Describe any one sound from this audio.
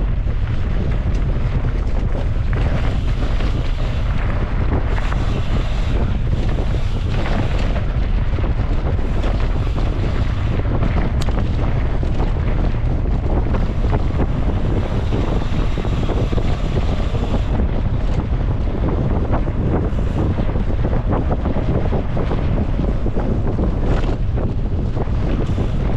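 Wind buffets loudly, blowing hard outdoors.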